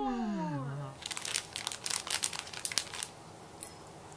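A plastic candy wrapper crinkles and rustles.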